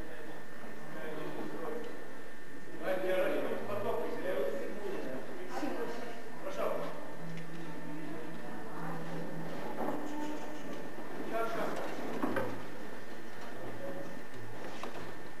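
An elderly man speaks with animation to a group, his voice echoing off the walls.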